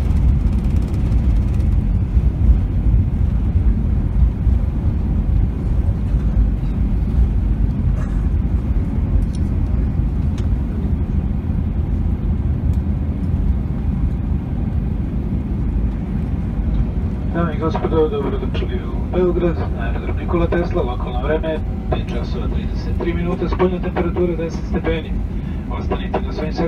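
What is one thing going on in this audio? A jet's engines roar loudly in reverse as a plane slows on the runway.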